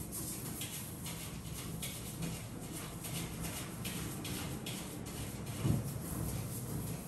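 A toilet brush scrubs rhythmically inside a toilet bowl, with splashing water.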